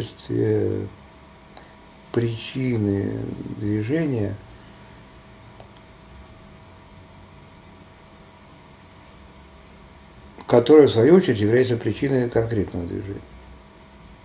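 An elderly man speaks calmly and close by, in short phrases with long pauses.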